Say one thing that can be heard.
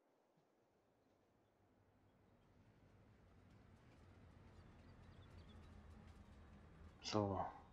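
A train rumbles along the tracks, growing louder as it approaches.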